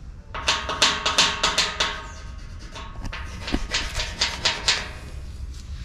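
Thin sheet metal scrapes and rattles loudly in bursts.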